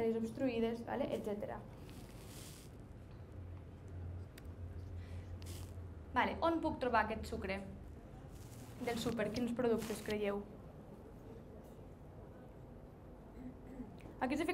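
A woman speaks calmly into a microphone, heard through a loudspeaker in a room.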